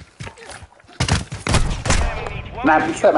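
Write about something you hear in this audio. Gunshots crack in a short burst.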